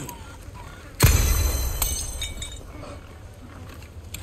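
A gunshot fires loudly and rings out.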